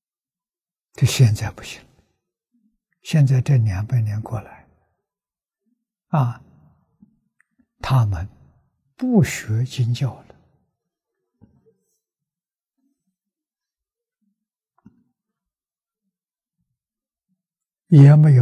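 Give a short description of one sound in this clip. An elderly man speaks calmly and slowly into a close microphone, with long pauses.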